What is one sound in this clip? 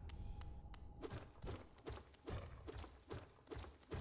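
A blade slashes and strikes something hard again and again in a quick rhythm.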